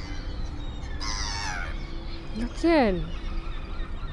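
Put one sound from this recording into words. Gulls call loudly nearby.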